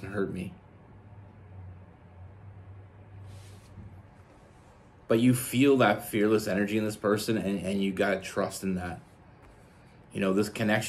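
A young man speaks calmly and closely into a microphone.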